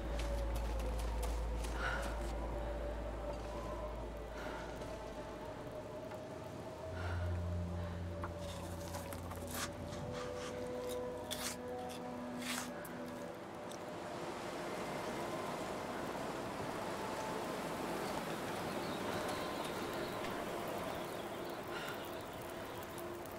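Wind blows steadily across open snow.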